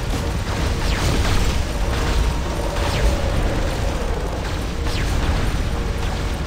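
A giant robot stomps along with heavy, booming metal footsteps.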